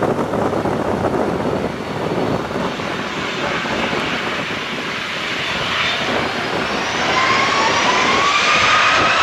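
Jet engines roar steadily in the distance.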